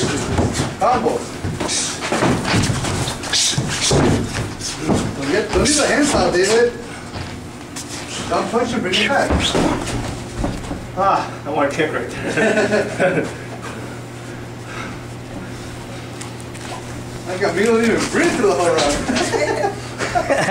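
Boxing gloves thud against focus mitts in quick bursts.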